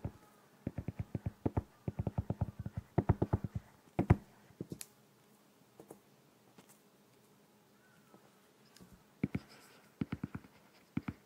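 A stylus taps and clicks rapidly on a tablet's glass.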